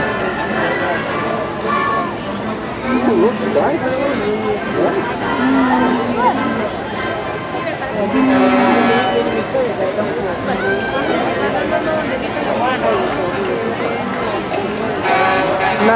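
Children shout and squeal excitedly nearby.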